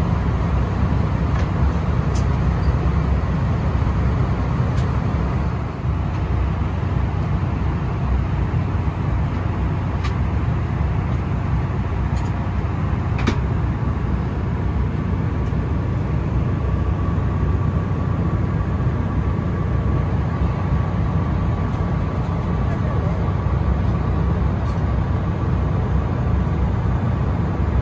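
A jet engine drones with a steady, low roar inside an aircraft cabin.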